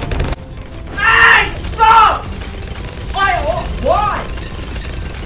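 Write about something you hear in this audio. A young man shouts with animation, close by.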